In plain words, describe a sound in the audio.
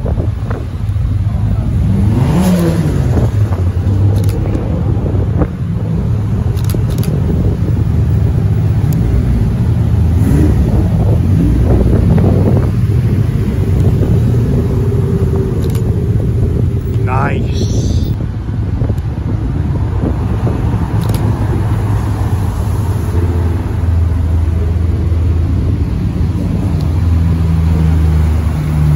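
Modified cars drive past one after another.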